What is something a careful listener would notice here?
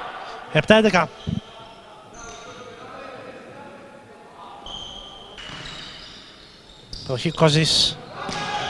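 A volleyball is struck with a sharp slap in an echoing hall.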